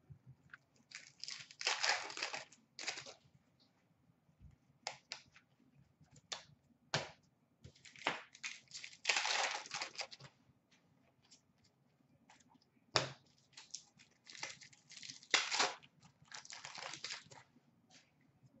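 Trading cards rustle and flick as they are handled.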